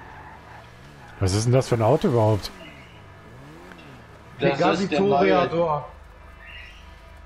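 A car engine hums and revs as the car drives.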